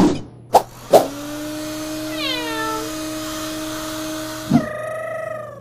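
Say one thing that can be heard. A hair dryer blows with a steady whoosh.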